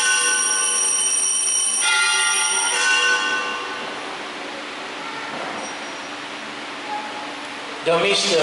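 A man speaks through a microphone and loudspeakers in a reverberant hall.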